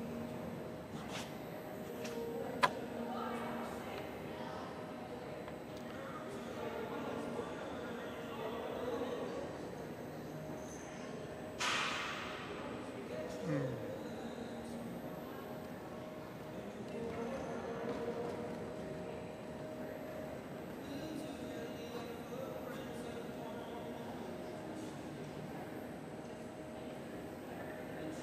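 A horse canters on soft footing in a large echoing hall.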